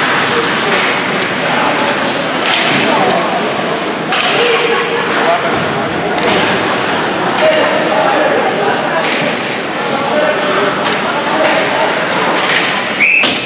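Skates scrape and carve across the ice.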